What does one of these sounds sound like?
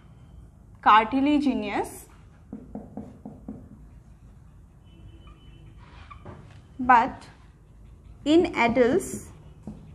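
A young woman speaks clearly, in short bursts.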